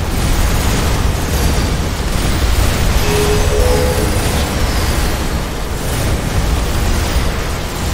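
Energy weapons zap and crackle rapidly in a game battle.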